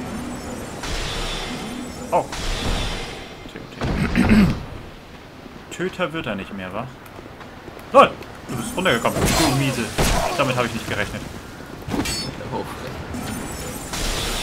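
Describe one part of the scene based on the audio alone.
Sword blows clash and thud in a game fight.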